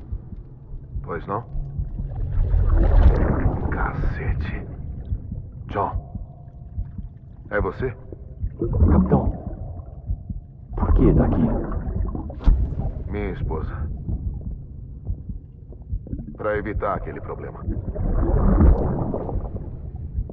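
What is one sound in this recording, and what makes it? A man speaks in a low, tense voice.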